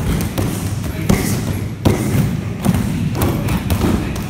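Punches thud against a padded strike shield.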